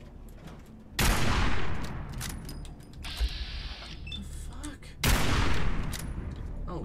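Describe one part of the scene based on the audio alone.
A rifle fires loud shots that echo and fade.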